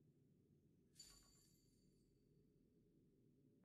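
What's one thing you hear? A bright chime rings out once and fades quickly.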